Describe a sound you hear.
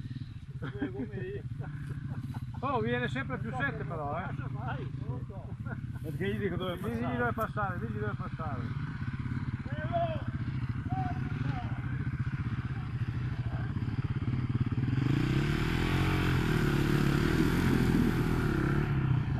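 Motorcycle engines idle steadily close by.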